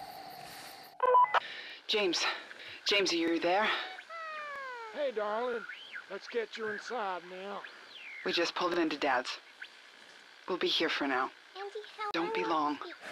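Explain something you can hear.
A woman speaks calmly over a walkie-talkie.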